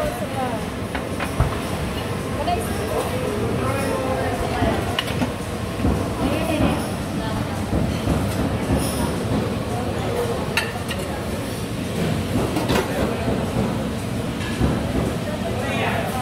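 A metal lid clinks against a steel pot.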